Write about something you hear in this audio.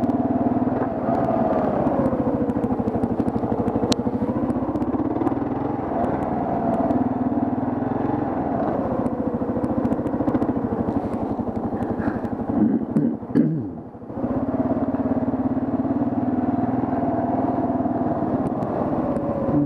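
A motorcycle engine rumbles steadily at low speed, its pitch rising and falling.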